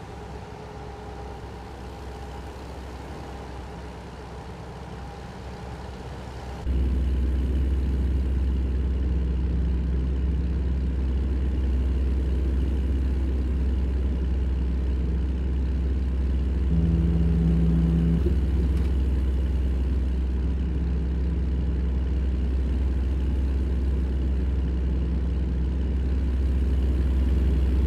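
A heavy truck engine drones steadily, growing much louder and closer partway through.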